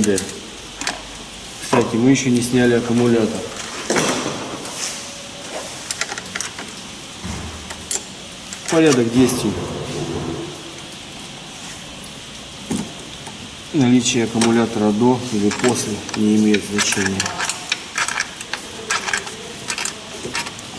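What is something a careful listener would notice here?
Metal tools clink and tap against engine parts.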